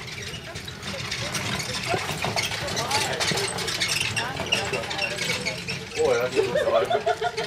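A horse-drawn carriage rattles past close by.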